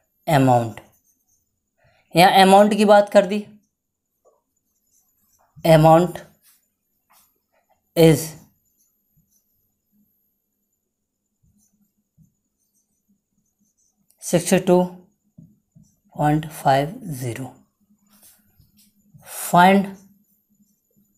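A young man speaks calmly in short phrases, close by.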